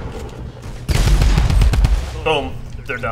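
A gun fires a rapid burst.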